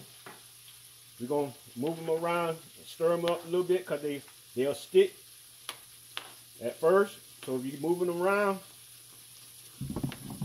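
A spoon stirs and scrapes in a pot of liquid.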